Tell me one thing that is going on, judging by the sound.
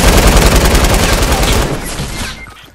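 A gun fires in rapid bursts, close by.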